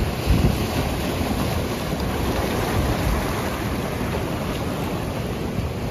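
Waves surge and splash against rocks close by.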